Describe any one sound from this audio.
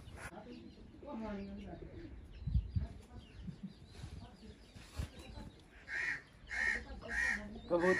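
Hens cluck nearby.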